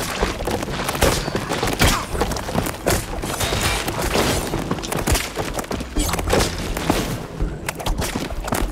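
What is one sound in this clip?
Magic zaps crackle and whoosh.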